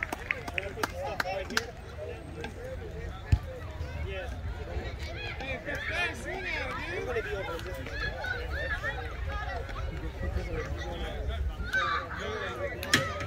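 Young players talk and call out across an open field.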